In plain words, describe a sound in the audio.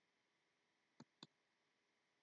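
A computer mouse clicks twice, softly.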